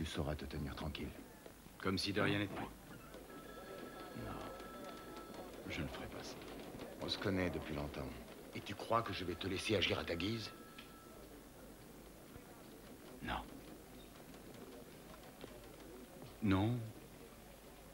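Men talk tensely at close range.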